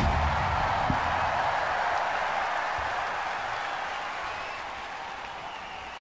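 A large crowd cheers and applauds in a big echoing hall, slowly fading.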